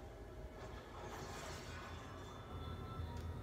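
A bright magical whoosh bursts from a television loudspeaker.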